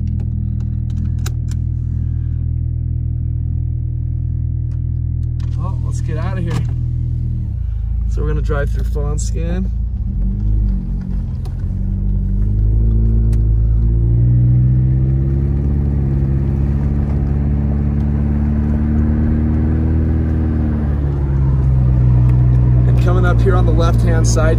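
A car engine hums steadily from inside the car, rising and falling in pitch.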